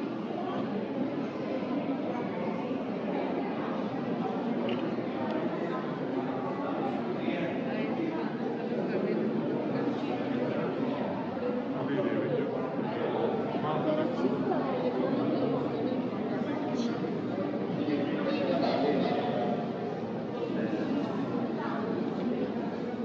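A crowd of people murmurs and talks in a large echoing hall.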